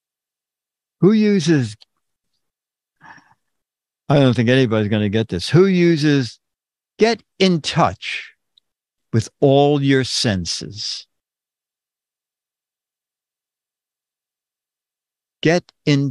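An elderly man speaks calmly and close into a microphone, in short bursts with pauses.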